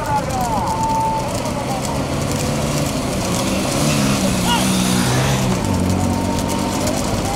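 A motorcycle engine hums close by.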